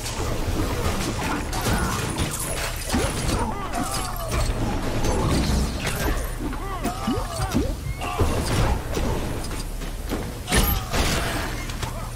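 Laser blasts fire with sharp zaps.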